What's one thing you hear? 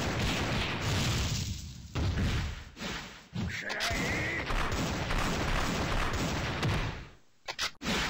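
Fiery explosion sound effects burst in a fighting game.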